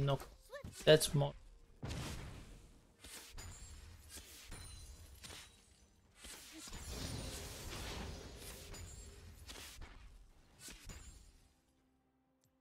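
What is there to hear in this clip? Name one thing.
Magic blasts, hits and swooshes burst in quick succession during a video game battle.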